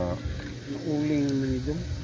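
Liquid pours into a cup.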